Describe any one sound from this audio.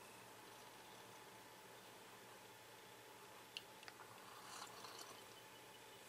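A man sips from a cup.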